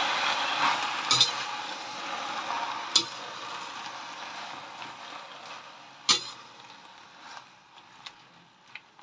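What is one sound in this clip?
Lettuce sizzles in a hot pan and slowly fades.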